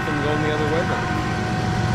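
A locomotive horn blares loudly.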